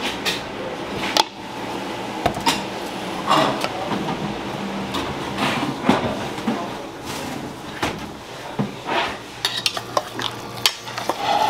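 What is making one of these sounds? A ladle clinks against a metal bowl.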